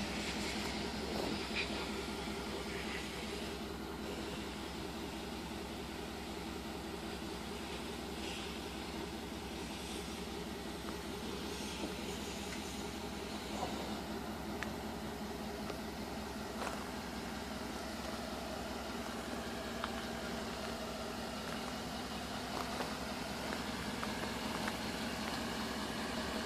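A vehicle engine idles steadily nearby.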